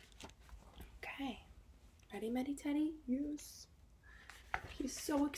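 A young woman reads a story aloud close to the microphone, in a lively voice.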